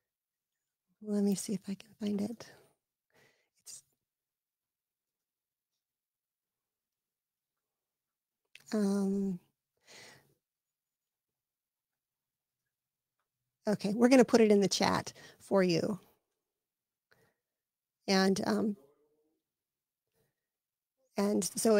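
A woman speaks close into a microphone with animation, in short bursts with pauses.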